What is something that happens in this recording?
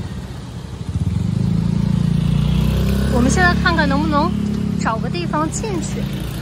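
A motorbike engine hums close by as it passes.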